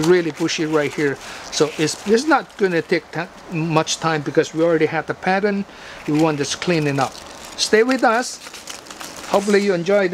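Pine needles rustle as gloved hands brush through the branches.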